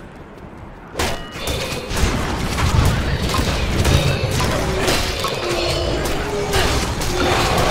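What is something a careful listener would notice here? Weapons clash and magic spells crackle in a fight.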